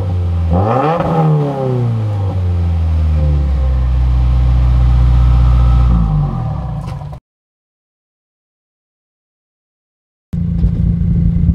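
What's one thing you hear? A car engine idles with a deep, throaty exhaust rumble.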